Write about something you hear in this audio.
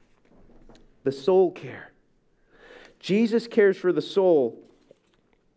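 A middle-aged man reads aloud calmly into a microphone.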